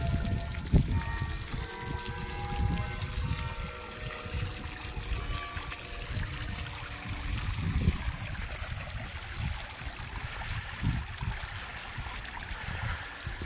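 A small fountain splashes and trickles steadily into a pool.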